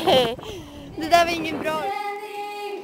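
A young woman sings into a microphone.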